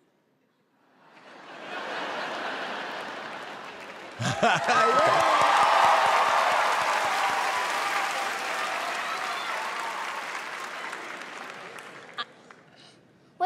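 A large audience cheers and applauds loudly.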